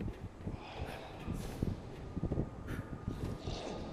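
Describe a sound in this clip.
High heels clang on metal stairs.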